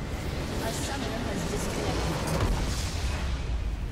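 A crystal structure shatters with a heavy explosion.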